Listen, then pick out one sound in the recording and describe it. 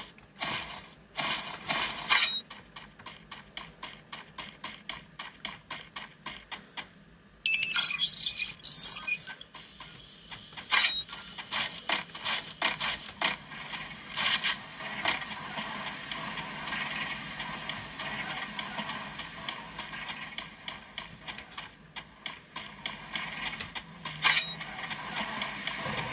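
Rapid gunshots from a phone game crackle in quick bursts.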